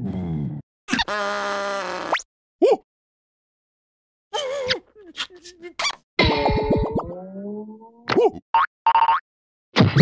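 A cartoon worm shrieks and babbles in a squeaky, high, comic voice.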